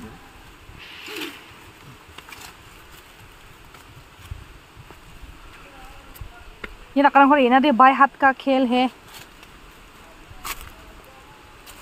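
Footsteps crunch on dry leaves and rock.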